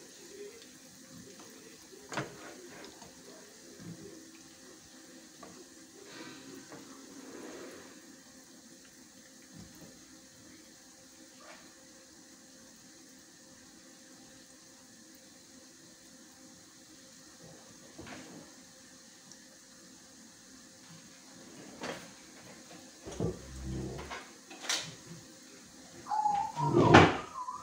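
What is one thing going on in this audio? Oil sizzles and crackles softly in a frying pan.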